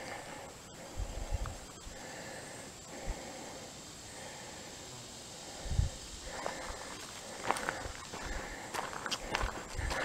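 A shallow stream trickles gently over stones.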